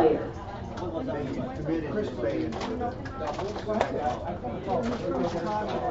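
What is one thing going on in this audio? Game pieces click against a board as they are moved.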